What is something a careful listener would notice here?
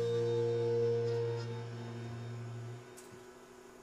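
An acoustic guitar chord rings out and slowly fades away.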